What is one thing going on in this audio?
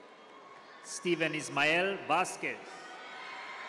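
A woman cheers and shouts loudly nearby.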